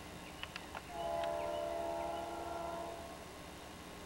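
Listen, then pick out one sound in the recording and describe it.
A train horn blows loudly for a couple of seconds.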